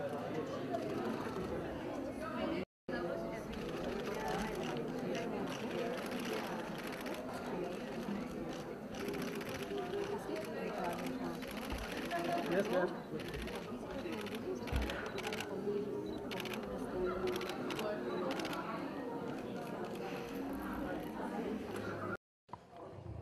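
A crowd chatters loudly all around.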